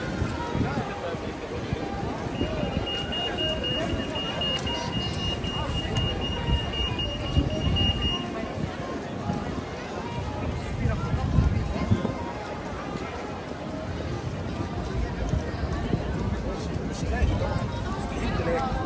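A busy crowd murmurs and chatters all around outdoors.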